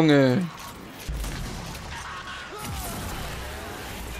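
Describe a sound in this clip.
A gun fires with a heavy blast.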